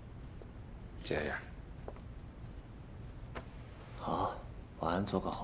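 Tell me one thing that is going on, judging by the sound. A man speaks softly nearby.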